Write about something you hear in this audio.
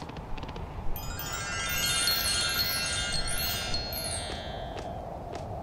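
Bright chimes tinkle in quick rising runs.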